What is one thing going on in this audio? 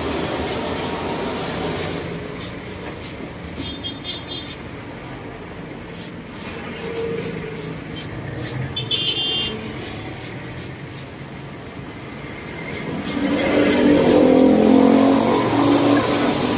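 Rattan strips creak and tap against a wooden frame.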